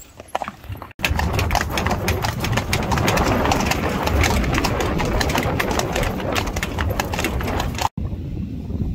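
Horse hooves clop steadily on a road.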